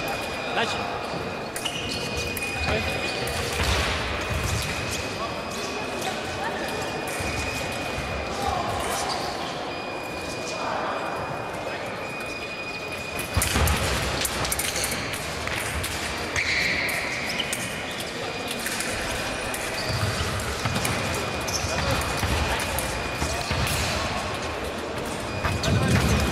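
Fencers' blades clash in a large echoing hall.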